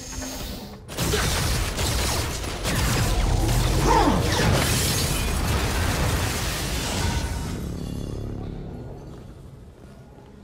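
Magical energy crackles and roars loudly, then slowly fades.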